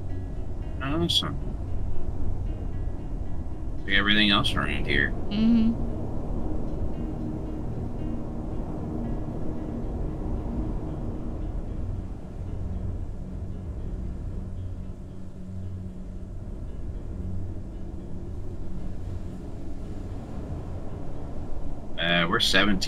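A vehicle engine hums with a low, steady rumble.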